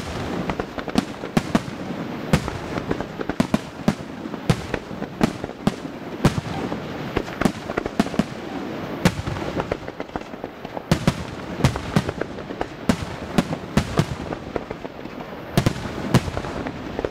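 Fireworks crackle in a steady rumbling roar.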